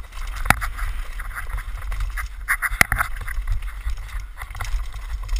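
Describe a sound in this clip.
Downhill mountain bike tyres crunch over loose rocks and dirt.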